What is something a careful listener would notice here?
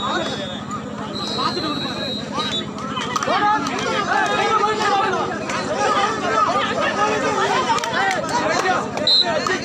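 A large crowd shouts and cheers outdoors.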